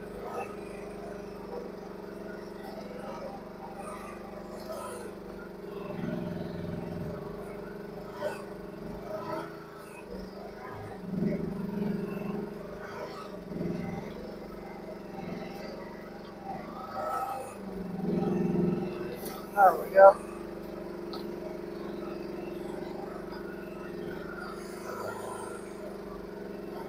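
A small excavator's diesel engine runs steadily close by.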